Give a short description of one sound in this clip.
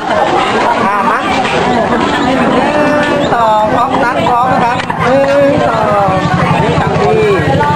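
A crowd of young people chatter and squeal loudly all around.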